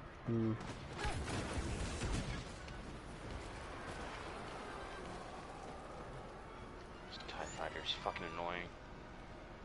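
A laser rifle fires sharp shots.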